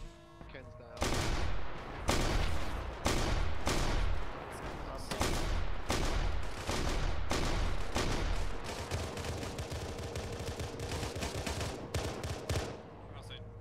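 Gunfire crackles in rapid, loud bursts.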